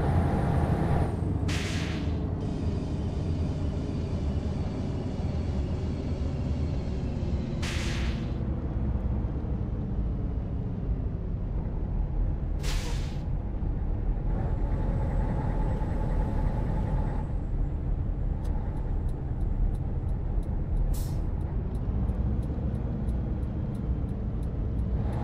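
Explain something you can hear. A truck engine rumbles low and steady while driving.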